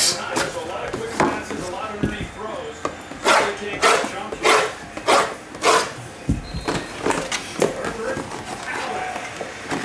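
A knife slits plastic wrapping on boxes with quick scraping strokes.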